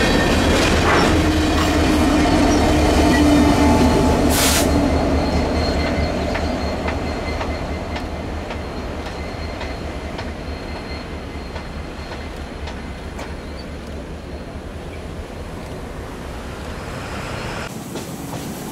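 A freight train rumbles past close by and slowly fades into the distance.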